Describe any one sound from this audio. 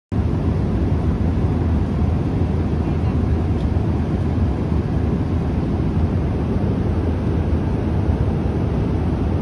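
An airliner's engines roar in a low, steady rumble inside the cabin.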